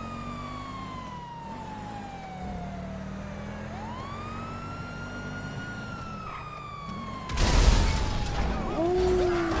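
A police siren wails steadily, rising and falling slowly.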